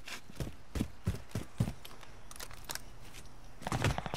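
A rifle clatters as it is swapped for another gun.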